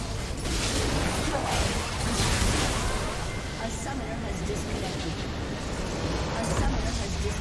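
Magic blasts and bursts crackle rapidly in a chaotic fight.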